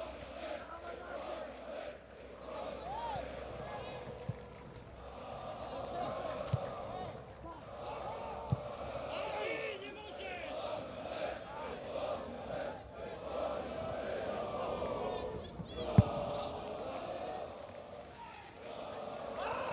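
A large crowd chants and cheers loudly in a stadium.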